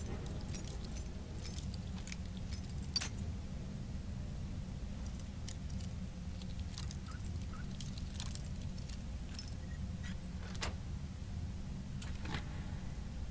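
Metal lock picks click and scrape in a lock.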